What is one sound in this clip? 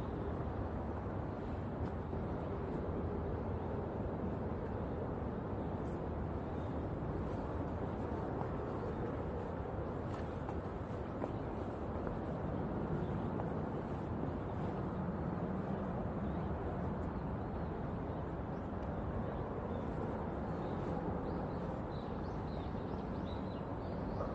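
Footsteps scuff along a stone path outdoors.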